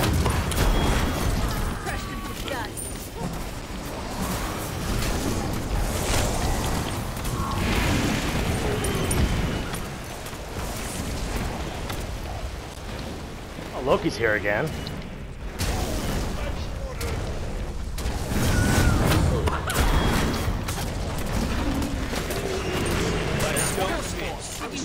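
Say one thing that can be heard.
Magic spells blast and crackle amid fast combat.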